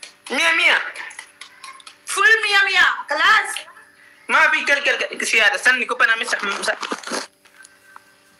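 A young woman speaks with animation through a phone.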